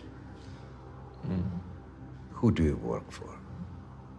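A young man groans and mumbles.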